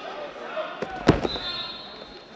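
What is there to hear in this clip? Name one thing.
A wrestler is slammed onto a wrestling mat with a thud.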